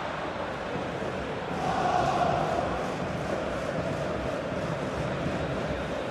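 A large stadium crowd roars and cheers steadily, swelling briefly.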